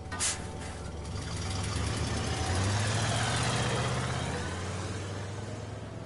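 A bus engine rumbles low as the bus drives past.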